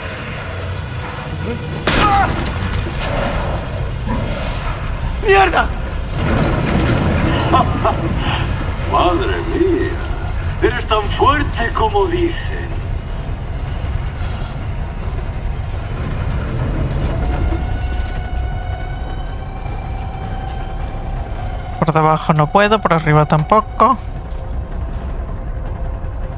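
A cart rumbles along rails.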